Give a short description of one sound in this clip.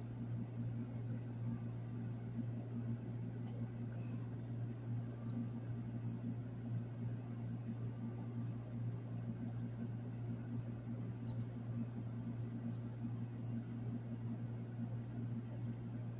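An outdoor generator runs with a steady low hum.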